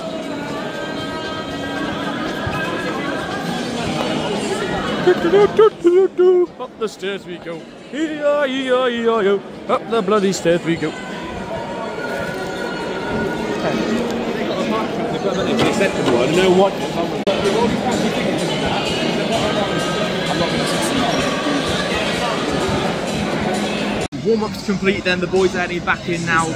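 A stadium crowd chatters and murmurs all around.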